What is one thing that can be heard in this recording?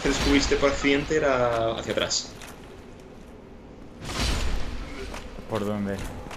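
A sword swings and strikes with heavy thuds.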